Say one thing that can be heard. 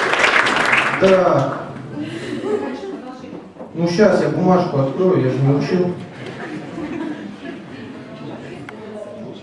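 A young man reads out through a microphone and loudspeakers.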